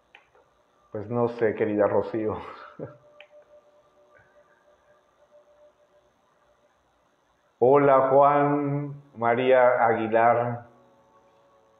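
A middle-aged man speaks calmly and close into a microphone, with pauses.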